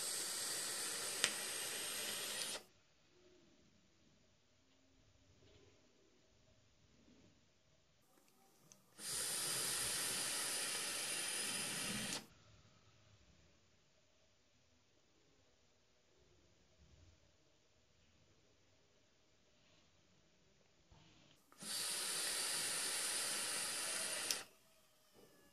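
An electronic cigarette coil crackles and sizzles loudly during long draws.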